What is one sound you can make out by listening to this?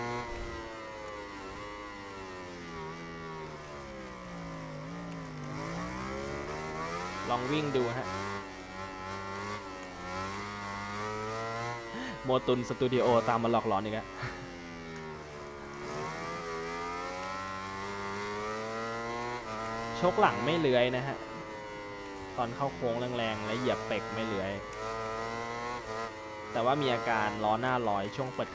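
A motorcycle engine whines loudly, rising and falling in pitch as it speeds up and slows down.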